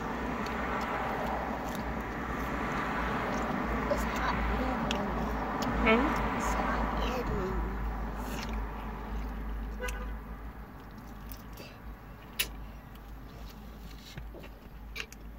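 A young woman chews food close to the microphone.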